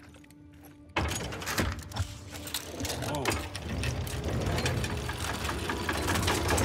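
A heavy stone mechanism grinds and rumbles.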